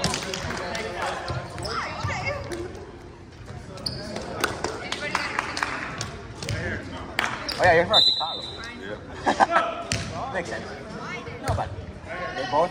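Young people shout and call out to each other in a large echoing gym.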